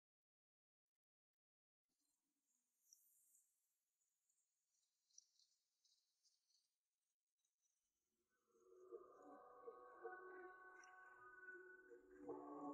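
A young woman gasps and moans weakly up close.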